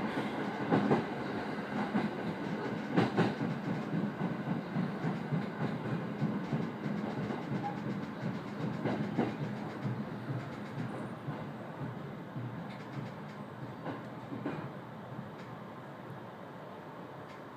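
A train rumbles and clatters along the tracks, then slows to a stop.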